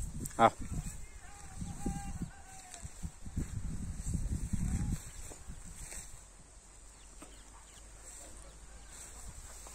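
A large dog walks through leafy clover.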